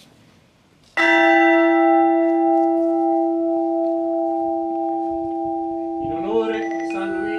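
A large bell is struck once and rings on, slowly fading.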